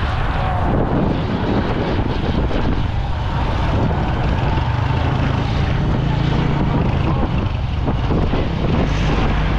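Wind rushes past loudly as the motorcycle rides.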